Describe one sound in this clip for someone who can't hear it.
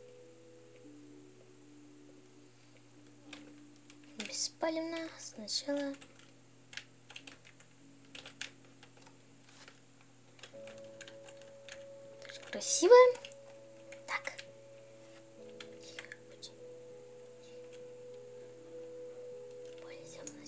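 Soft, simple electronic music plays steadily throughout.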